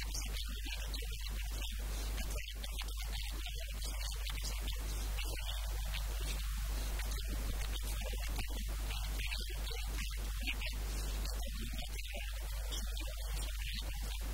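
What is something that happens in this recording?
A middle-aged man speaks calmly and steadily into a microphone close by.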